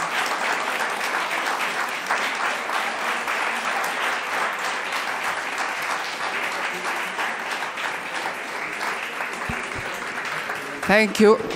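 People clap their hands in applause.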